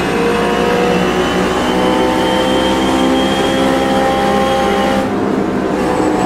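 A race car engine roars loudly at high revs.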